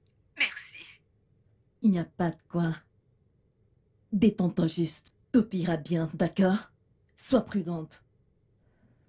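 A woman speaks into a phone with emotion, close by.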